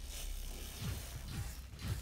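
A metal blade strikes armour with a sharp clang.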